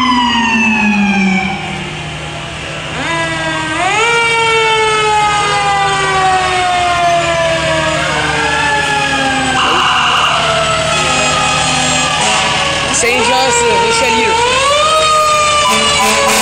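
A fire truck engine rumbles as it rolls slowly past.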